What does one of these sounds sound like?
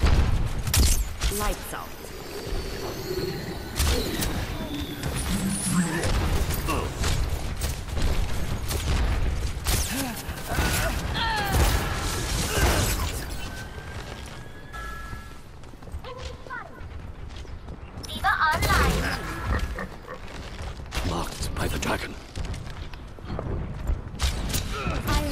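A bow twangs as arrows are loosed in quick bursts.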